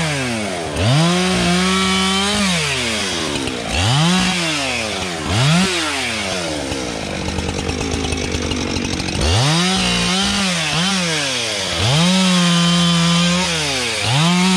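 A chainsaw revs up and down loudly, close by.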